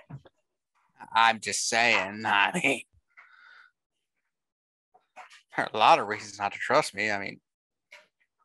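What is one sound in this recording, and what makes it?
A young man talks with animation through a headset microphone on an online call.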